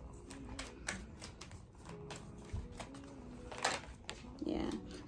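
Paper cards flick and shuffle softly.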